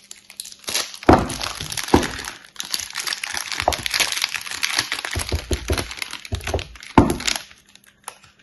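Plastic wrap crinkles and rustles loudly as hands peel it off.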